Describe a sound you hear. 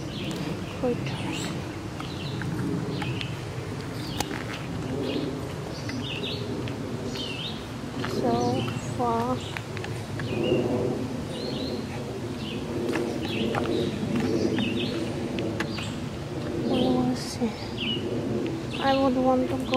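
A woman speaks calmly close by, outdoors.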